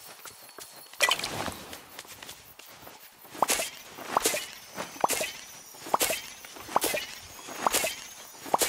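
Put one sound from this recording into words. Plants pop with bright sparkling chimes as they are harvested, again and again.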